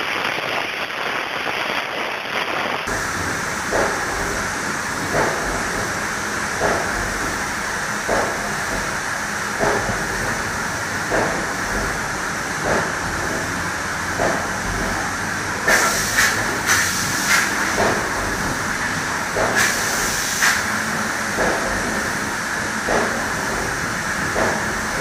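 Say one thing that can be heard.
A spray gun hisses steadily as it sprays.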